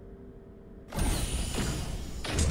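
A heavy metal door slides open with a loud rush.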